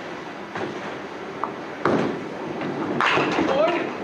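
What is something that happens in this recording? A bowling ball rolls down a wooden lane.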